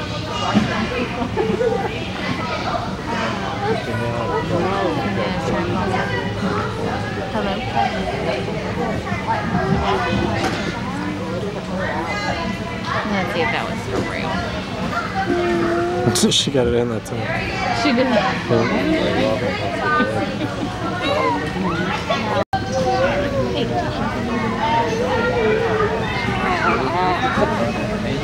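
A young woman talks to the children.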